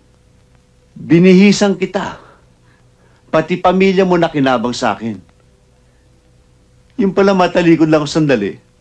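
A middle-aged man speaks with animation, close by.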